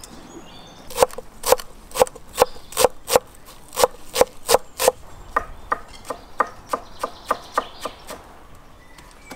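A knife chops herbs on a wooden board with quick, steady knocks.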